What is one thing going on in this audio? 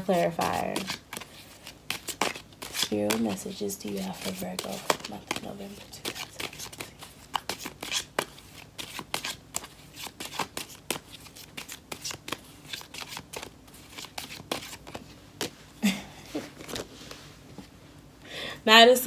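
Playing cards riffle and flick softly as they are shuffled by hand.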